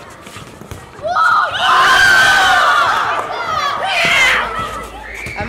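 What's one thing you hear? Children shout and cheer loudly outdoors.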